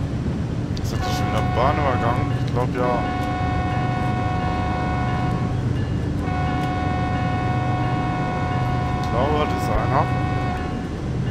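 A train horn blows in long blasts.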